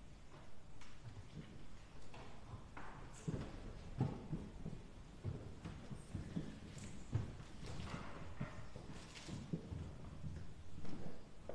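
Wood knocks and creaks as people rise from pews in a large echoing hall.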